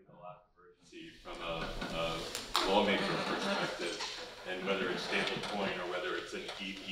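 A large audience chatters and murmurs loudly.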